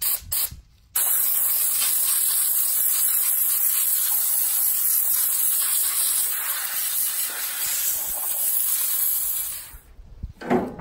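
A tool scrapes debris from a metal radiator.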